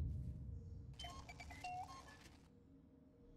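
A short electronic chime plays.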